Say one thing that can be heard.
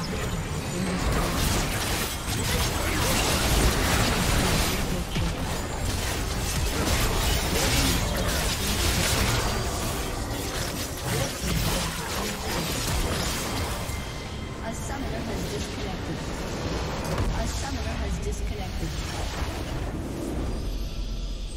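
Game battle effects crash and blast loudly.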